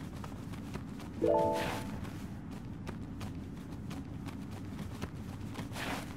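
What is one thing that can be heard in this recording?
Footsteps run quickly over rocky ground.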